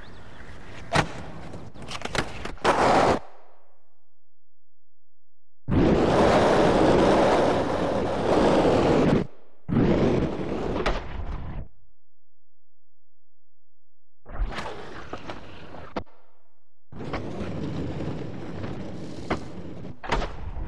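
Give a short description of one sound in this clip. Skateboard wheels clack as a board lands on concrete.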